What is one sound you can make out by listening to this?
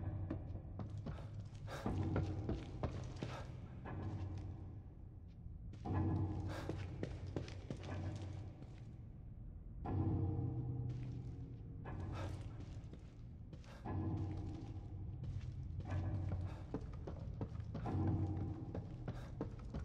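Footsteps creak on wooden stairs and floorboards.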